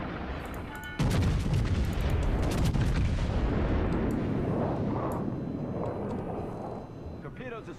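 Heavy naval guns fire with a deep, thundering boom that rumbles on and slowly fades.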